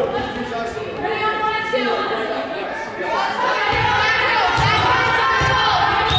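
Young women shout and call out to one another in a large echoing hall.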